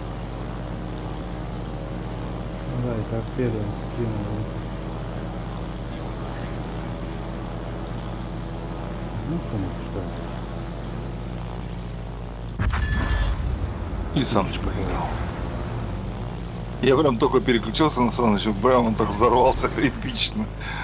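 Propeller plane engines drone steadily.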